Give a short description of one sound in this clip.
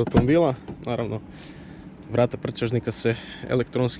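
A car's rear hatch opens.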